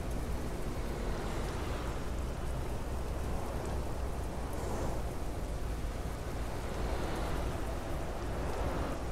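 A bus engine hums steadily as it drives along a highway.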